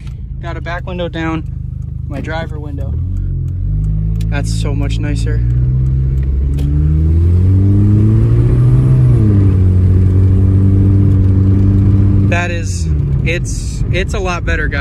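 A car engine idles and then revs up, rising in pitch and holding a loud steady hum before dropping back.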